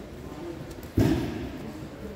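Bodies thump onto a padded mat.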